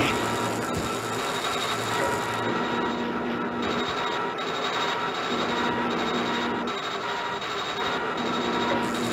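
Heavy machinery hums and churns steadily.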